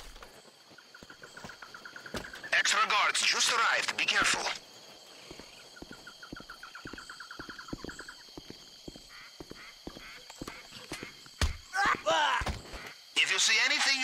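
Footsteps run quickly on a hard path.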